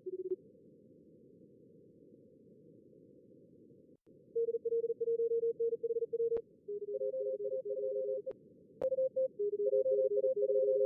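Morse code beeps sound from a radio receiver.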